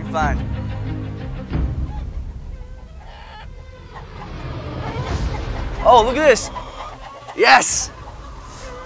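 Chickens cluck nearby outdoors.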